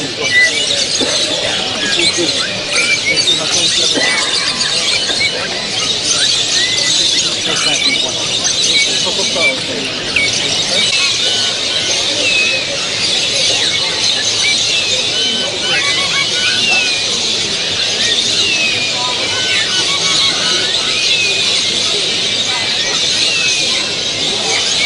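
Many small birds chirp and trill busily all around.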